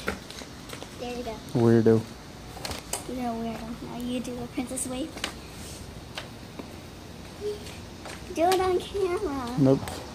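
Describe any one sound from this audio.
A young girl talks and laughs close by.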